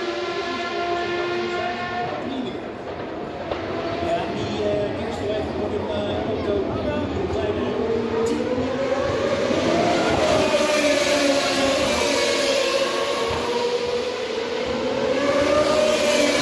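Racing car engines scream and whine past on a track, rising and falling in pitch.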